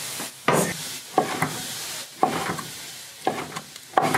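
A knife chops on a wooden board.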